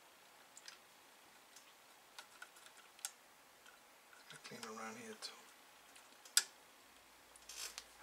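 Small metal parts click and tap as they are handled.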